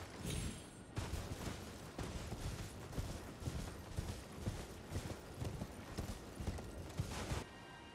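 A horse's hooves thud rhythmically on soft ground at a gallop.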